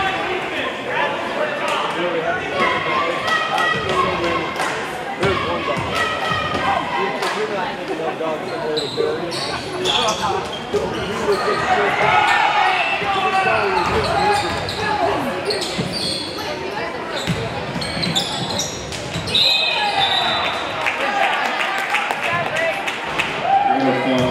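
A crowd cheers and murmurs in a large echoing gym.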